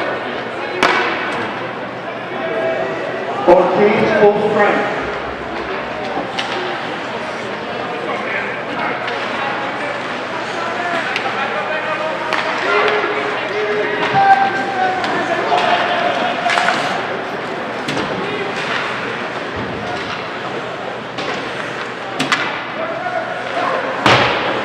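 Skates scrape on the ice.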